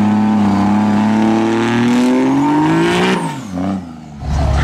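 A diesel truck engine revs loudly and roars away.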